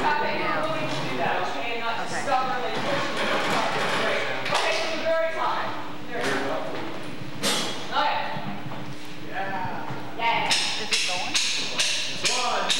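A band plays in a large echoing hall.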